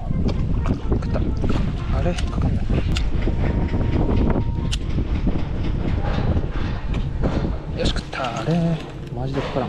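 A lure splashes across the water's surface.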